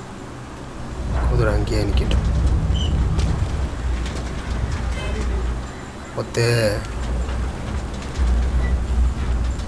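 A heavy metal bin rolls and scrapes across pavement.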